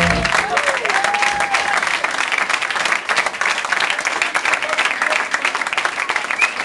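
A crowd claps loudly and steadily nearby.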